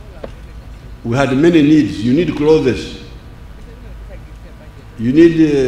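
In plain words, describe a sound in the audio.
An elderly man speaks slowly and deliberately through a microphone, in bursts with pauses.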